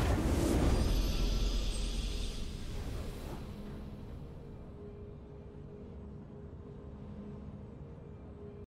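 A triumphant victory fanfare plays and fades.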